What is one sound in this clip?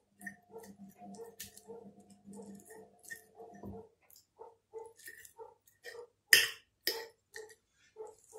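A fork scrapes and clinks against a ceramic plate while mashing food.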